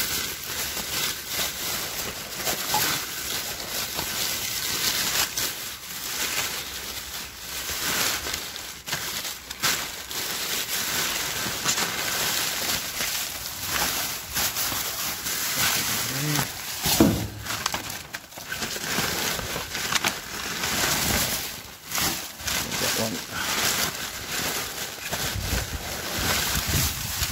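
Plastic bags crinkle and rustle as a hand rummages through them.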